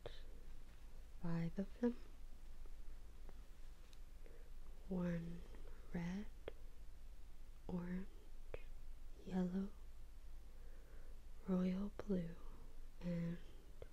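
A fingertip taps and slides softly on a sheet of paper.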